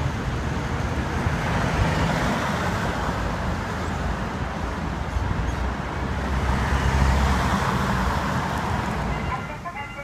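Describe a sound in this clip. Cars drive past close by with a swelling whoosh.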